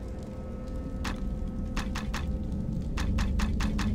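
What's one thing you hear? Menu selections click in quick succession.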